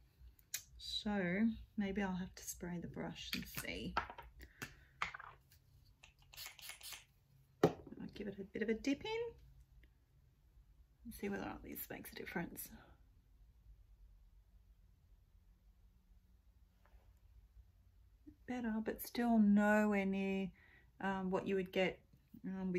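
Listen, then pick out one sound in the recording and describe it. A woman talks calmly and close to a microphone, with pauses.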